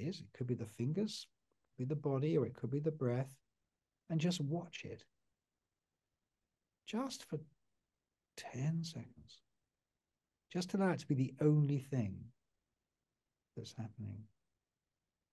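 An older man speaks calmly and slowly into a close microphone, with long pauses.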